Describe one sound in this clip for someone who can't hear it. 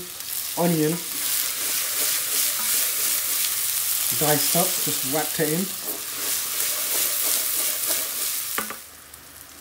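A wooden spoon scrapes around a metal pan.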